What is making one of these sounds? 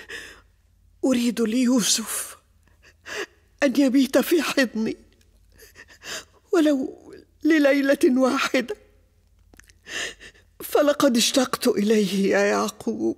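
An elderly woman speaks anxiously, close by.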